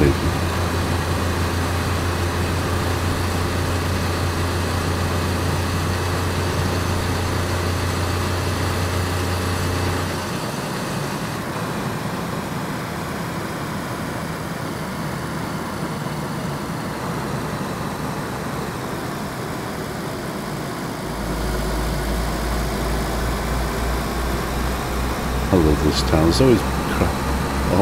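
Tyres roll on an asphalt road.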